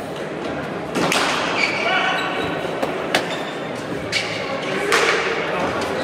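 A hard ball smacks loudly against a wall and echoes in a large hall.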